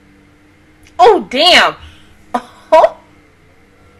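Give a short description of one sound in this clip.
A young woman makes a few short, loud vocal bursts close to a microphone.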